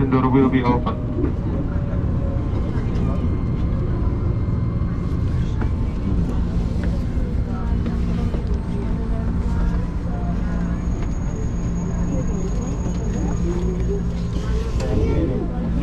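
Passengers murmur inside a crowded train carriage.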